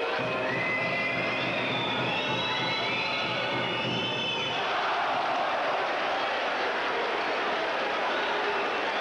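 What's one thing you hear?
A large crowd cheers and murmurs in an echoing hall.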